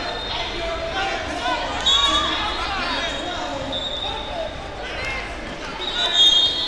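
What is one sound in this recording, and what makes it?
A crowd chatters and shouts in a large echoing gym.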